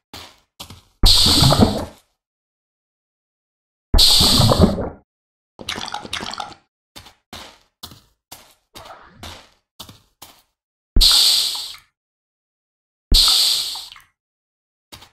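Liquid pours out of a bucket with a loud whoosh.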